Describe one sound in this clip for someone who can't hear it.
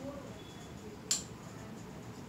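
A glue stick cap clicks off.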